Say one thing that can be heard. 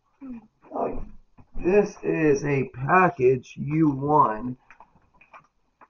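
A padded paper envelope rustles as it is lifted away.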